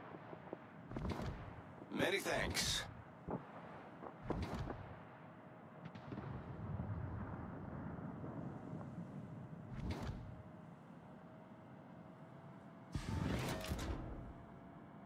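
Naval guns fire in loud, booming bursts.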